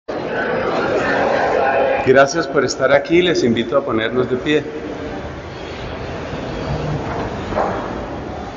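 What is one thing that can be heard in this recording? A man speaks calmly through a microphone and loudspeakers in an echoing hall.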